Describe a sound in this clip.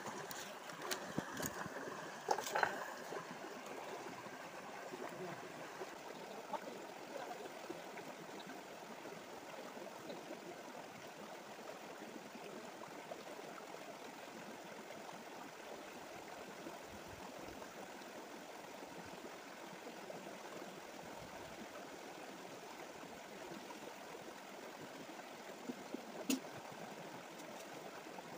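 A shallow stream rushes and gurgles over rocks nearby.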